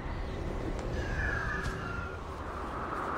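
An eagle screeches overhead.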